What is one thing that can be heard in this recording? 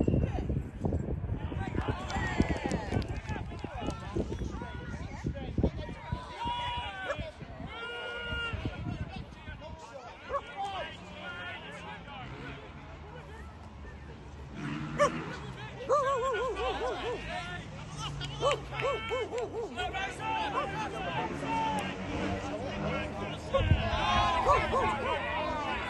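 Young men shout to one another across an open field.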